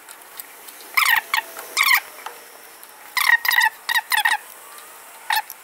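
A ratchet wrench clicks in short bursts against metal.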